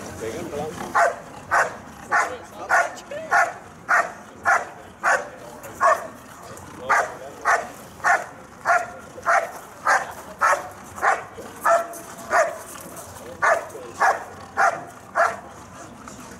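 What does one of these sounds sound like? A large dog barks loudly and steadily, again and again.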